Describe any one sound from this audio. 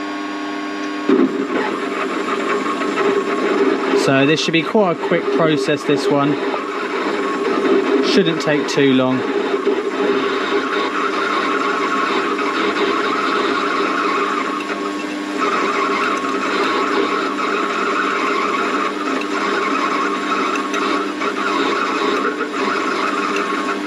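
A metal lathe hums steadily as it spins.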